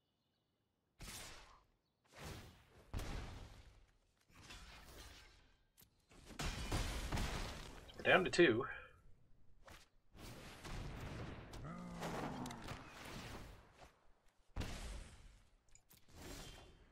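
Digital card game effects whoosh and thud.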